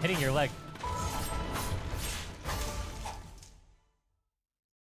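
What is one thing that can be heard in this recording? Game combat sounds clash and slash loudly.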